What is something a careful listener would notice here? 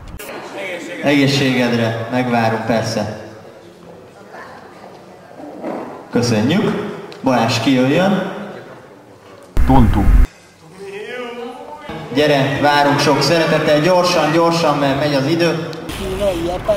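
A young man speaks through a microphone and loudspeaker with animation.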